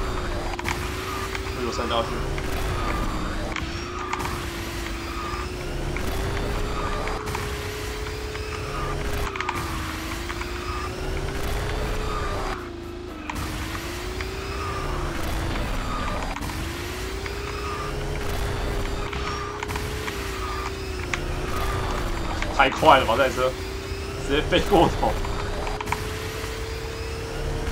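A kart engine in a racing game hums steadily, rising and falling in pitch.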